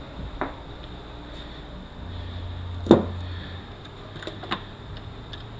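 Metal parts clink and knock against each other as they are handled.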